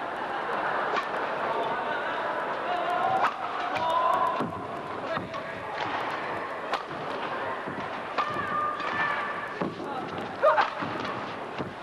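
A racket strikes a shuttlecock back and forth in sharp pops.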